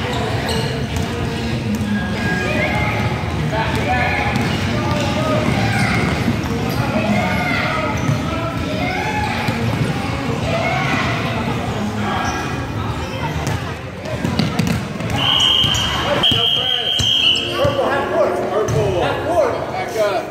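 Basketballs bounce on a wooden floor.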